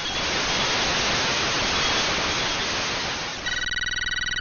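A video game plays a loud hissing burst of noise.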